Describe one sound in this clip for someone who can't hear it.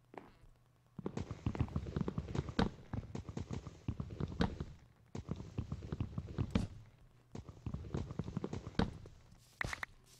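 Rapid knocking thuds of blocks being chopped repeat in a video game.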